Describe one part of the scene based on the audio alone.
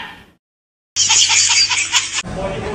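A baby laughs loudly and shrilly.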